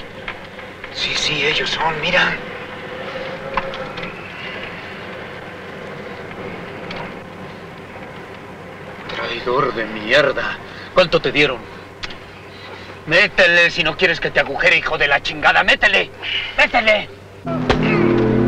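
Another man answers in a low voice nearby.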